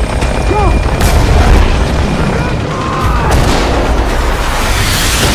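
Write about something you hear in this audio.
Explosions boom with sharp bangs.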